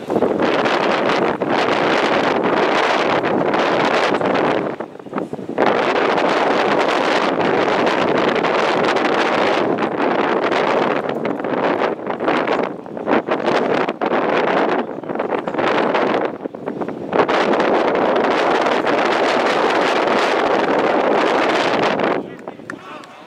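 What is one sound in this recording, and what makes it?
Wind blows hard outdoors, in strong gusts.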